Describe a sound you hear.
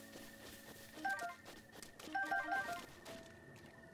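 Short jingles sound as items are picked up.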